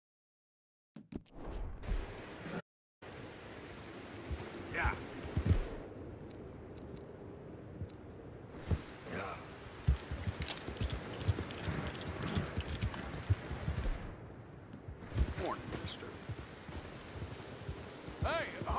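Horse hooves thud on grass as a horse trots.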